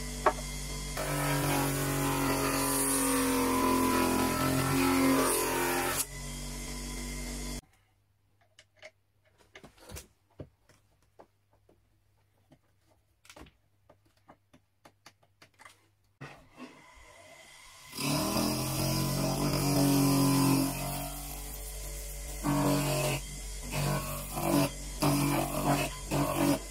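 Wood scrapes and grinds against the spinning sanding drum.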